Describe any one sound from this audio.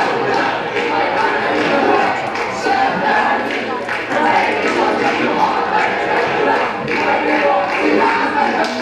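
A group of young men and women sing together loudly outdoors.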